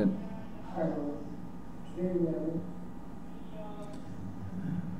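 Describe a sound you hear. A young man speaks briefly and calmly over an online call.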